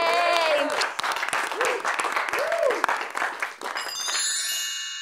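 A small group claps hands in rhythm.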